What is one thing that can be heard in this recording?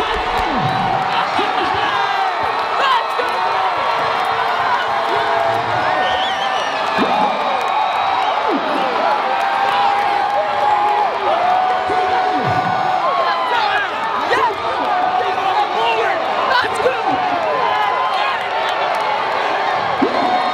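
A large crowd cheers and shouts excitedly in a big echoing hall.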